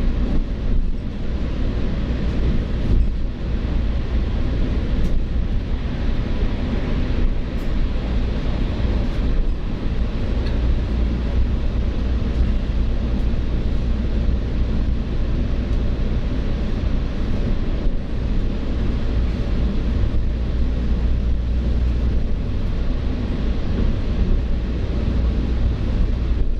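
A vehicle's engine rumbles steadily as it drives through an echoing tunnel.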